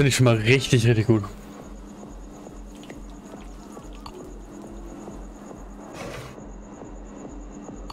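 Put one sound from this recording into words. Hot oil bubbles and sizzles in a deep fryer.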